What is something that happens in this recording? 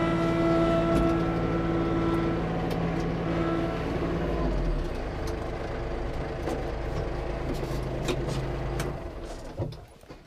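A tractor engine rumbles steadily nearby, then shuts off.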